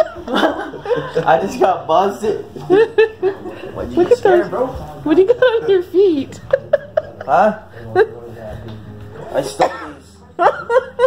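A young man talks and laughs loudly close by.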